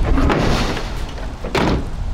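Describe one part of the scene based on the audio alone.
A truck tailgate clanks shut.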